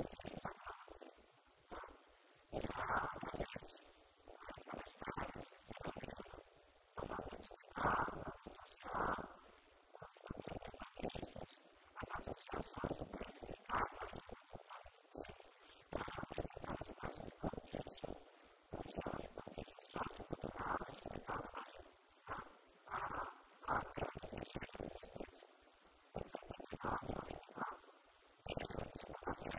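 An elderly man speaks with animation into a microphone, heard through a loudspeaker in a room.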